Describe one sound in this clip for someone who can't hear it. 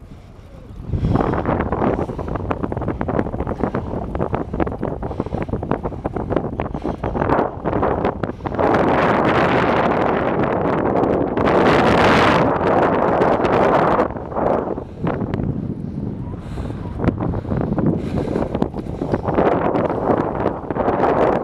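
Bicycle tyres roll over a concrete path.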